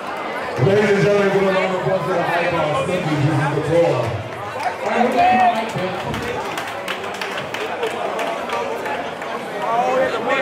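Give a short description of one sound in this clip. A crowd chatters and calls out throughout.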